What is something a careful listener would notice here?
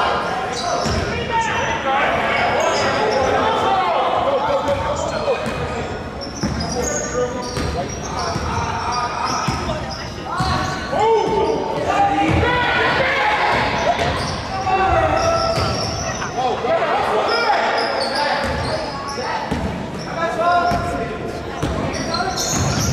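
A crowd of spectators cheers and shouts in the stands.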